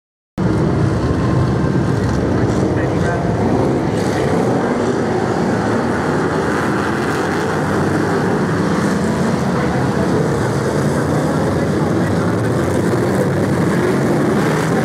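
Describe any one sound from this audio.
V8 stock cars race around a track at full throttle.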